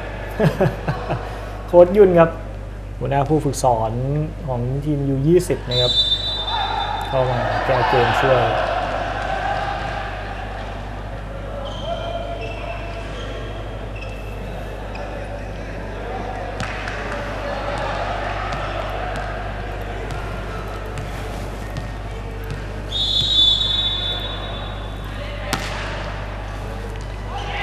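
Spectators murmur in a large echoing sports hall.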